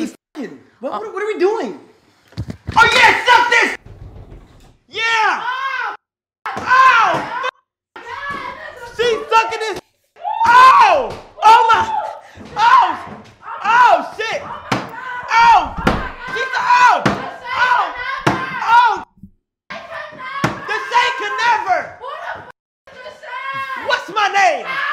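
A young man shouts and yells with excitement nearby.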